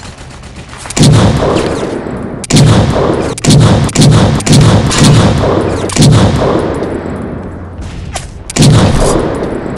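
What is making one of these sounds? A rifle fires loud single shots in an echoing hall.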